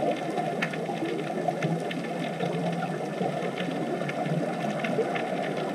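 Scuba divers' air bubbles burble steadily underwater.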